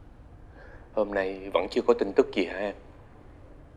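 A man speaks softly nearby.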